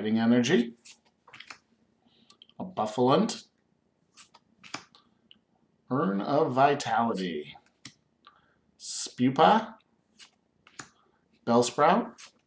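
Playing cards slide and flick against each other.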